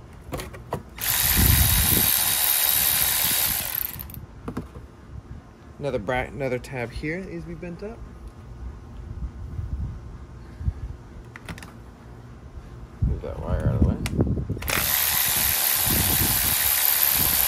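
A cordless power ratchet whirs as it spins bolts.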